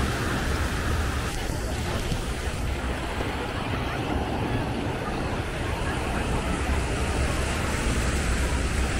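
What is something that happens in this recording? Small waves wash onto a sandy beach.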